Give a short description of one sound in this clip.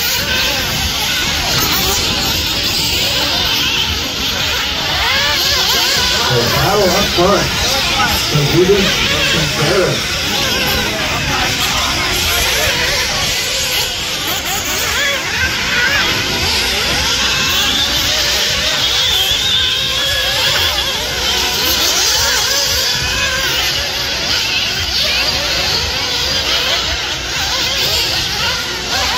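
Small electric motors whine at high pitch.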